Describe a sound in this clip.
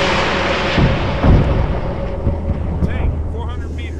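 Burning debris crackles and rumbles as a helicopter falls.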